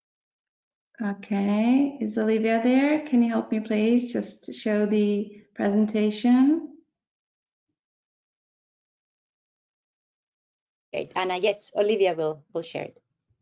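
A woman speaks calmly through a computer microphone, as on an online call.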